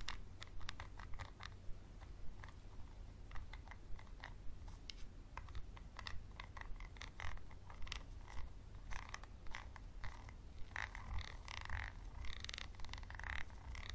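A pencil taps and scrapes against a plastic bottle cap.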